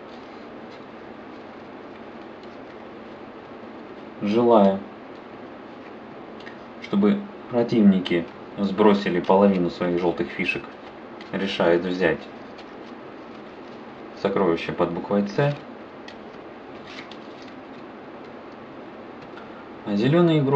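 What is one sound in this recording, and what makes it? Playing cards rustle and flick softly as they are handled and shuffled.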